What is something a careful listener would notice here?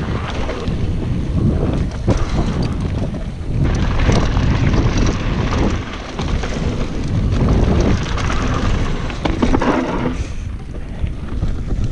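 Wind rushes loudly past a rider speeding downhill outdoors.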